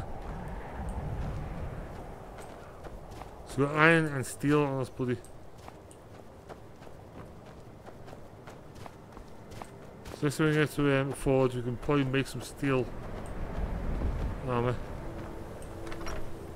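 Footsteps tread steadily over dirt and wooden steps.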